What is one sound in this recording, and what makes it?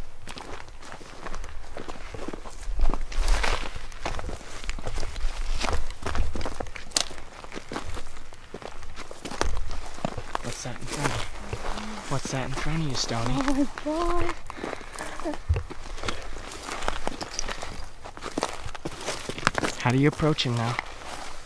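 Footsteps crunch on dry rocky ground.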